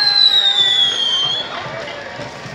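Fireworks whistle as they shoot up.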